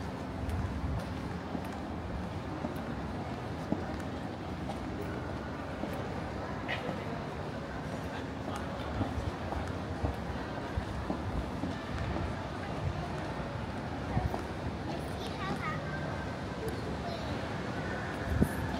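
A crowd murmurs and echoes through a large indoor hall.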